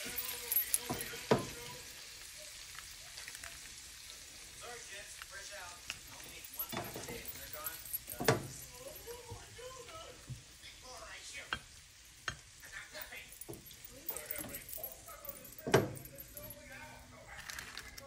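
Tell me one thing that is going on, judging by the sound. A spatula knocks and scrapes against a pan and a plate.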